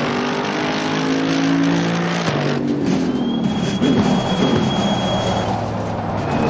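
A racing car engine roars at high revs, then drops in pitch as the car brakes and shifts down.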